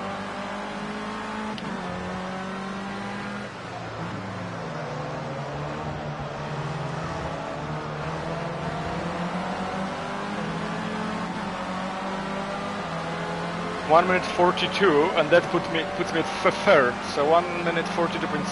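A racing car engine whines steadily at high revs, rising and falling with gear changes.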